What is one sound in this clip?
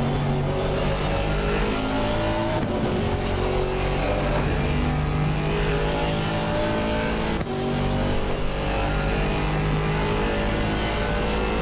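A race car engine roars steadily at high revs.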